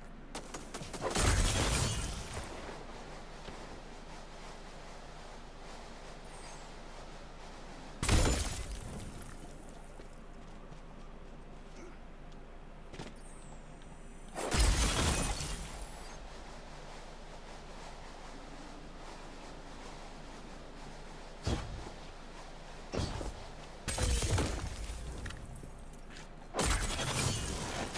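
A loud rushing whoosh bursts out several times as a game character leaps and glides.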